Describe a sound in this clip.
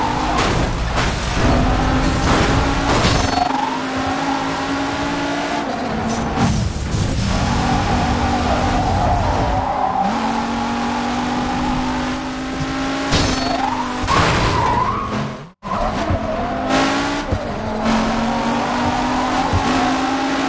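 Cars crash and scrape against each other with loud metal impacts.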